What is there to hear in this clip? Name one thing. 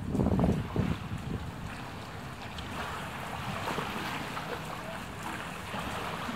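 Floodwater laps and streams steadily outdoors.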